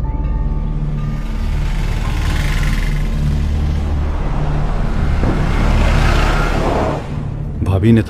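Traffic rumbles and hums along a busy street.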